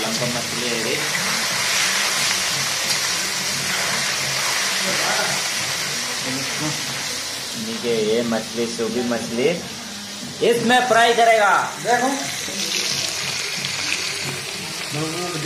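A metal spatula scrapes and stirs in a metal wok.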